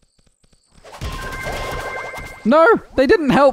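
A burst of crackling game effects with chiming tones plays.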